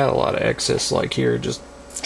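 Small scissors snip.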